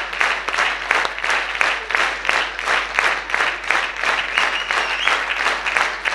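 A group claps hands in a steady, quick rhythm in a large hall.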